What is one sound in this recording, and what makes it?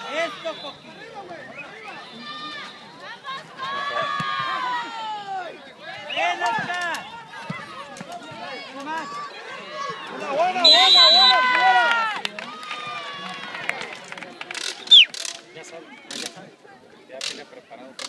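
Young men shout and call out to each other outdoors.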